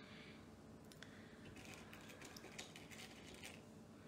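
Small beads rattle and clink softly in a wooden bowl.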